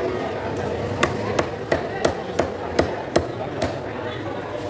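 A cleaver chops through fish onto a wooden block in quick sharp knocks.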